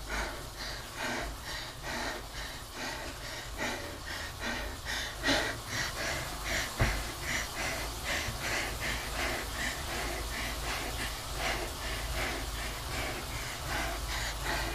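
An indoor bike trainer whirs steadily as someone pedals.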